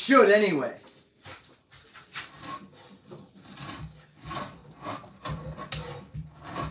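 A hand plane shaves wood with short rasping strokes.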